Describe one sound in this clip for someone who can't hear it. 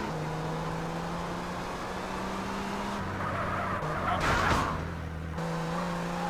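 A car engine hums steadily and revs.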